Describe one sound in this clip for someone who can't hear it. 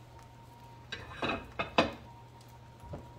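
A ceramic plate clinks as it is set down.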